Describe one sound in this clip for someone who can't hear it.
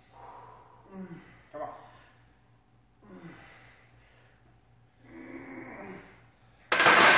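A man strains and grunts while lifting.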